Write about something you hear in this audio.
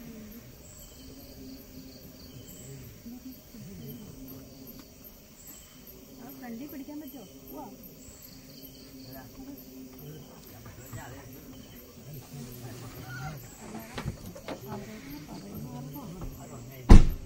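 A woman talks quietly, muffled through a closed car window.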